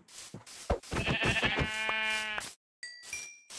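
A pig squeals when struck.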